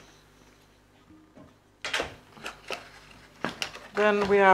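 Cardboard rustles as it is handled.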